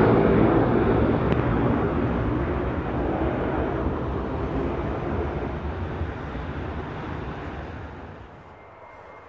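A jet airliner roars overhead and fades away.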